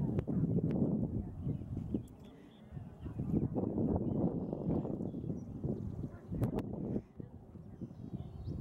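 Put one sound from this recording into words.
Wind gusts across open ground, rumbling against the microphone.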